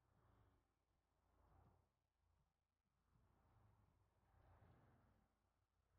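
Cars whoosh past on a highway.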